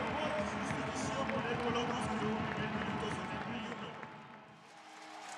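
A stadium crowd cheers loudly.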